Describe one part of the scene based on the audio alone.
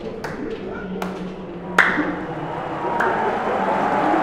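Hands slap together in greetings.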